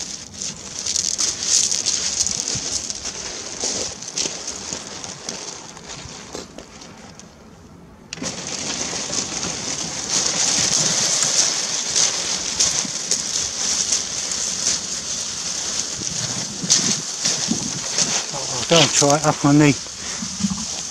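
Footsteps crunch on pebbles.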